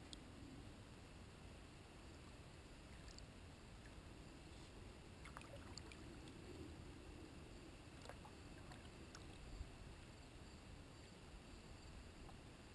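Wind blows softly over open water.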